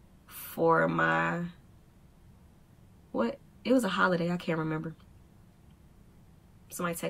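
A young woman speaks close to a microphone, in short expressive bursts.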